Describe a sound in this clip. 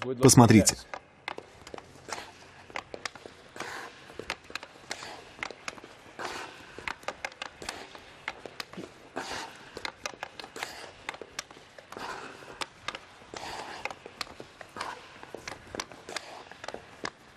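A hockey stick taps a puck again and again in quick clicks.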